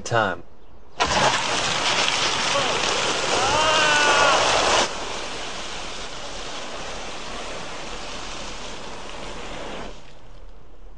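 Water splashes and pours over a car.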